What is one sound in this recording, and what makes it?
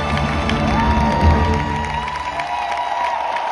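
A band plays loud music with a heavy beat.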